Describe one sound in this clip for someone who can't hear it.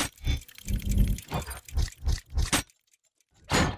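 Metal gears clank and whir as they turn.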